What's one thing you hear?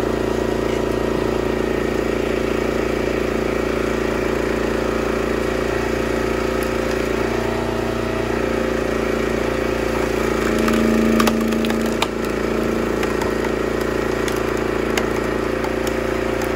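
A log splitter's engine hums steadily.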